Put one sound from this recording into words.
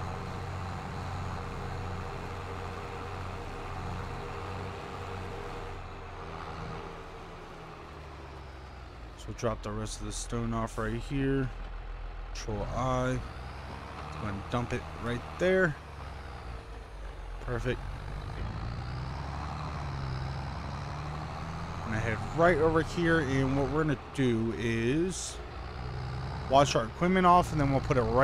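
A tractor engine rumbles steadily at low revs.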